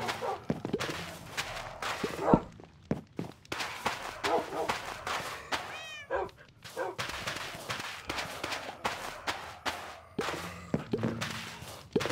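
Dirt blocks crunch with short thuds as they are dug and placed.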